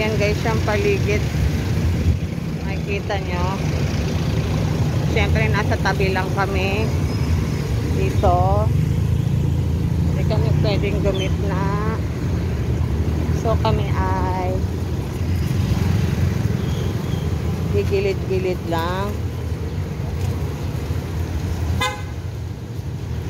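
Vehicles rumble past on a wet street.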